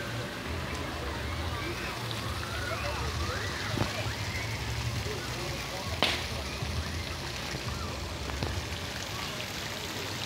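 A fountain splashes and patters steadily into a pool.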